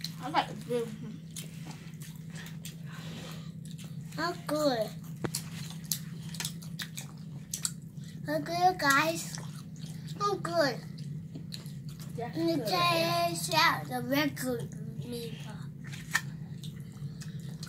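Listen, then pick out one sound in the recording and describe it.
Children chew and crunch food.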